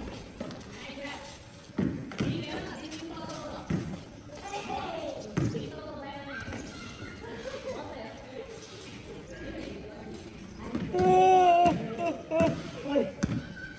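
Children shout and call out outdoors, some distance away.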